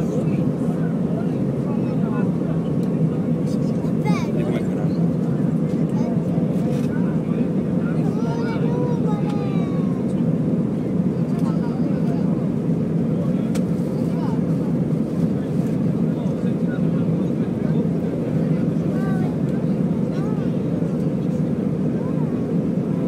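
Jet engines roar steadily inside an aircraft cabin.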